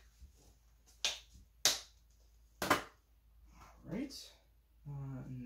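Plastic packaging crinkles and clicks as it is handled.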